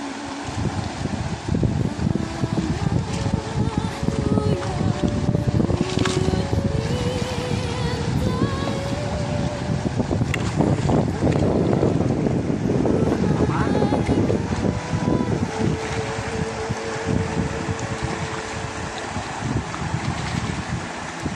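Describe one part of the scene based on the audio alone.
Water sloshes and splashes as pans are swirled in a shallow river.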